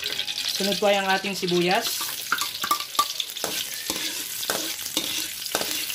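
Chopped onions drop into hot oil and sizzle loudly.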